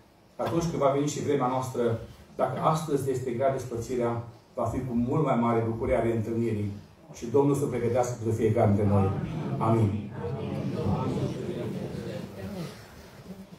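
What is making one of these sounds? A man speaks solemnly through a loudspeaker in a large echoing hall.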